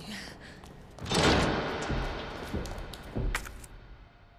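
A heavy door creaks and scrapes open.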